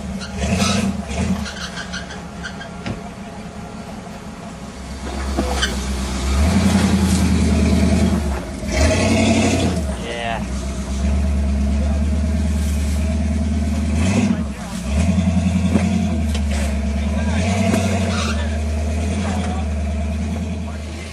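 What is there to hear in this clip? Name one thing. Tyres grind and crunch over rocks.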